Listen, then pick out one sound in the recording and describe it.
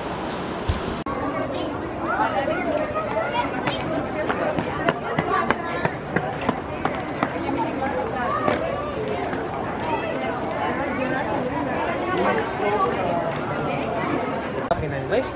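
A crowd of adults and children chatters and calls out close by.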